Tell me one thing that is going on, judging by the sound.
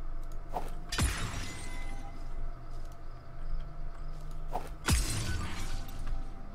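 A stone block crumbles and shatters with a gritty crunch.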